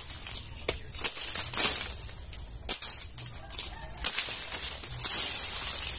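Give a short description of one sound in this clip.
Leaves rustle as a hand shakes a tree branch.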